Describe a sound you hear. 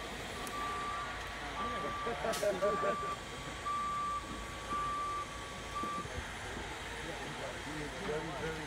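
A car engine runs.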